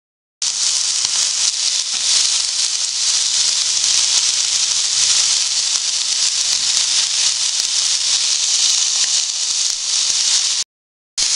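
Meat sizzles loudly on a hot grill pan.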